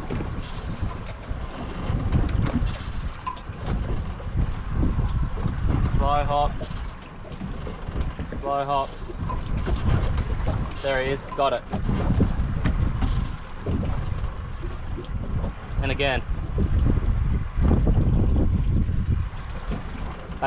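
Wind blusters steadily across a microphone outdoors.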